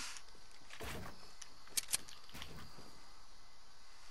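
Wooden walls clack into place quickly.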